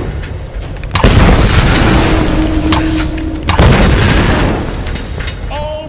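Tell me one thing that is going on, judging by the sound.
Loud explosions boom and rumble.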